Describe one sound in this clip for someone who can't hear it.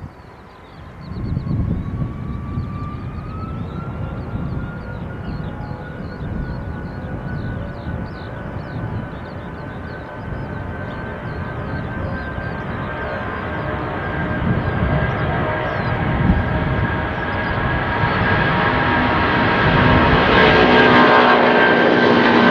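A jet airliner roars loudly as it speeds down the runway and climbs away.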